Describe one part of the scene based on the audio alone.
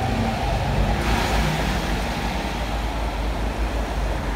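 A bus drives past outside with a rushing noise.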